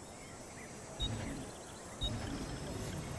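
A game menu chimes as options are selected.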